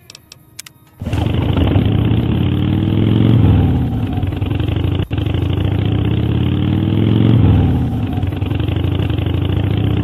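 A motorcycle engine roars loudly, its revs rising and falling.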